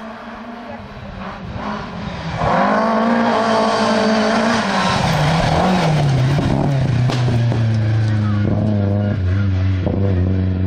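A third rally car engine screams closer and roars past.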